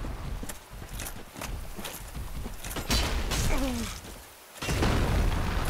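A huge beast stomps and thuds heavily on the ground.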